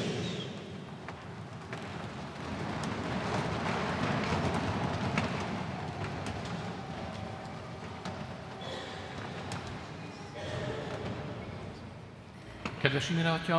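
A congregation shuffles and murmurs in a large echoing hall.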